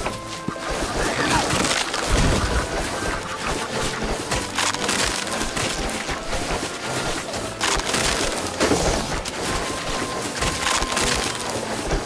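Cartoonish game sound effects pop, splat and thud in quick succession.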